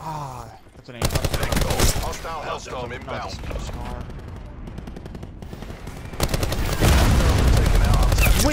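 Rapid gunfire rattles loudly and close by.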